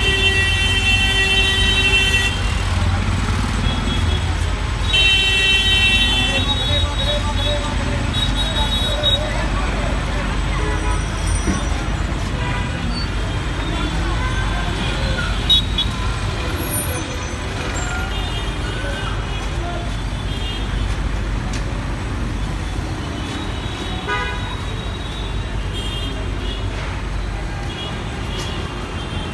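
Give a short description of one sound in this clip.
Busy street traffic rumbles steadily outdoors.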